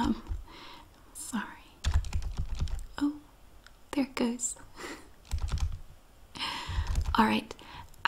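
A woman speaks close to a microphone with animation.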